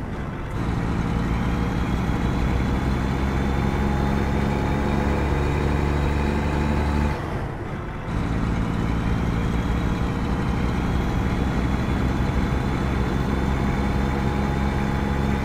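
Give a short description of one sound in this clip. A truck's diesel engine drones steadily, dropping briefly as the gears shift.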